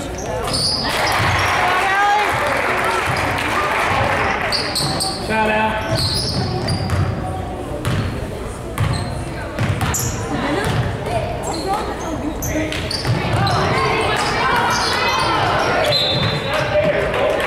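Spectators cheer and shout in an echoing gym.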